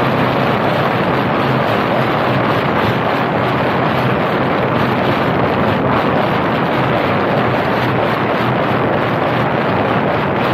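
Wind buffets a microphone on a moving car's roof.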